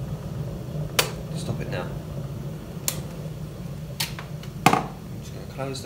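A plastic kettle lid clicks open and shut.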